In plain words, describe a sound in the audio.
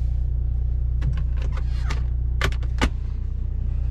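Buttons click on a car's dashboard controls.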